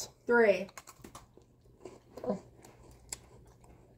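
A young man crunches on a cookie.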